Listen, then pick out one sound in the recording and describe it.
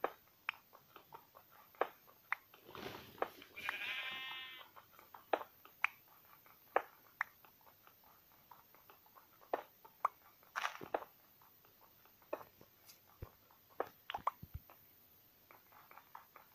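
A pickaxe taps and breaks stone blocks with quick, dry clicks.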